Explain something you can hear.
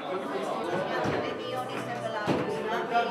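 An older woman and a younger woman talk quietly.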